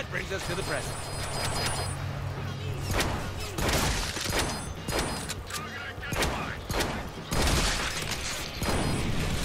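Guns fire in rapid bursts of loud shots.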